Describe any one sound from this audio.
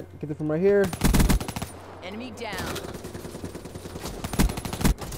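Rapid gunfire bursts from an automatic rifle.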